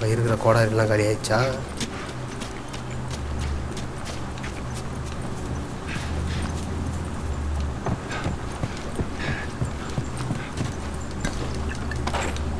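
Footsteps crunch on grass and then thud on wooden floorboards.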